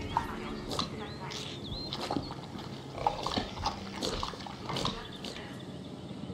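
A dinosaur screeches and chirps.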